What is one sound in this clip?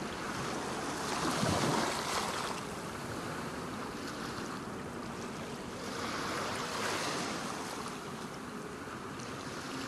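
Waves wash and lap steadily against a shore.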